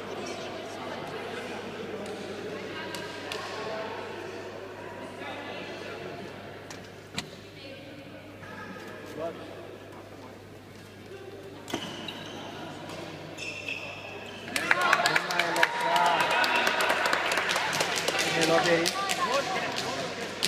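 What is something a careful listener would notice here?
Rackets hit a shuttlecock with sharp pops in a large echoing hall.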